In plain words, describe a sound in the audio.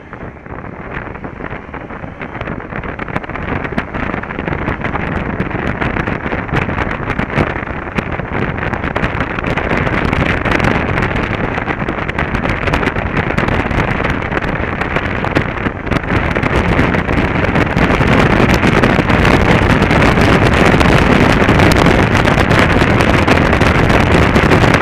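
Wind roars loudly past a moving motorcycle, growing stronger as the speed rises.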